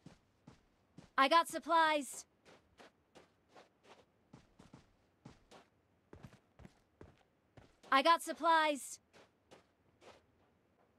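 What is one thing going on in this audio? Footsteps crunch quickly on dry sand.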